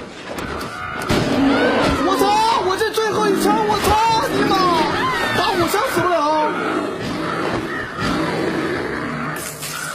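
A bear growls and roars up close.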